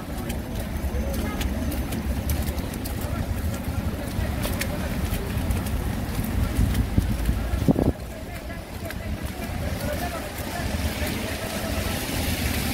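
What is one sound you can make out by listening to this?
Car engines idle and hum in the street.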